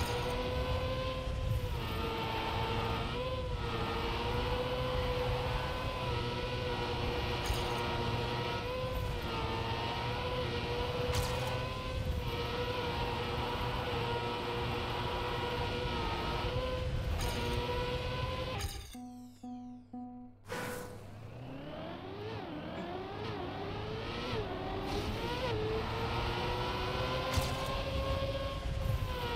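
A racing car engine whines at a high, steady pitch, rising and falling as the car speeds up and slows.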